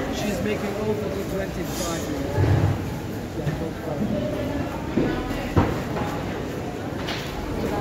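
Many people talk in a busy, echoing hall.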